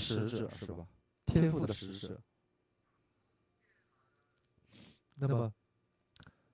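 An elderly man speaks with animation into a microphone, in short bursts.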